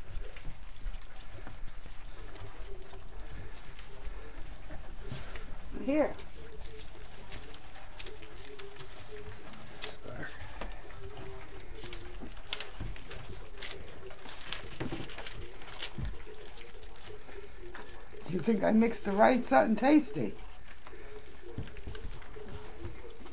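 Puppies lap and slurp food from a dish.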